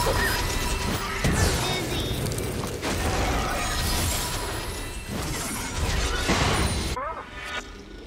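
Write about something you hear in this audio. Spell blasts and weapon strikes crash and whoosh in a fast video game fight.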